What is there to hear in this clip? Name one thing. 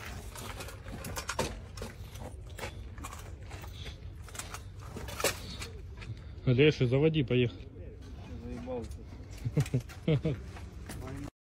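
Debris crunches and scrapes underfoot.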